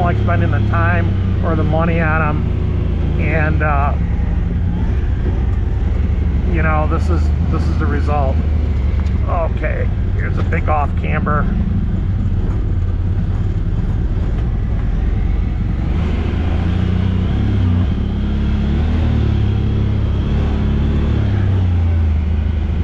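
Tyres roll and crunch over a bumpy dirt trail.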